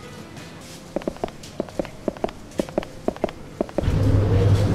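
Short electronic beeps tick in quick succession.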